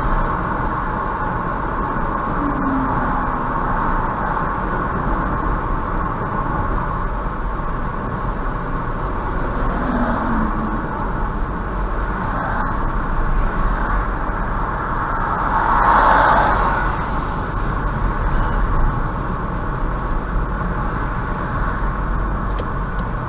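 A car's engine hums steadily.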